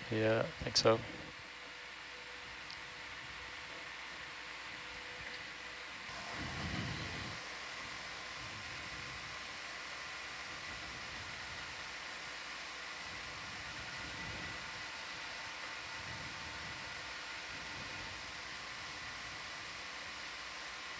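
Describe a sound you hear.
An underwater vehicle's motors hum steadily.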